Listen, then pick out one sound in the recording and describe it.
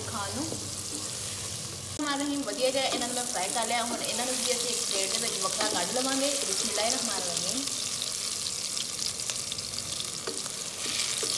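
A wooden spatula scrapes and stirs food in a metal pan.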